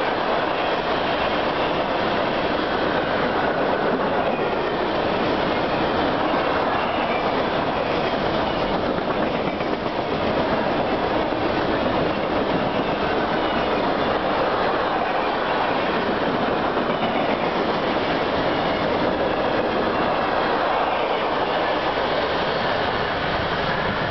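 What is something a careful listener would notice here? A freight train rumbles past close by, its wheels clattering steadily on the rails.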